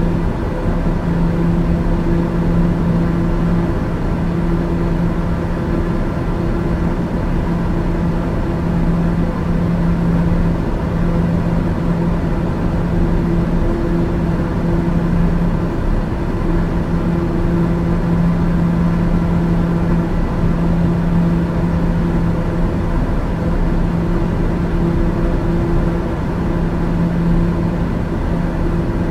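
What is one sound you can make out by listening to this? Air rushes past the cabin in a steady roar.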